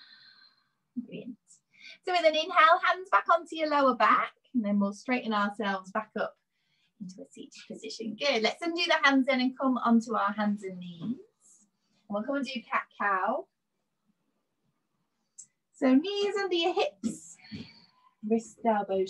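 A woman speaks calmly through a microphone, as on an online call.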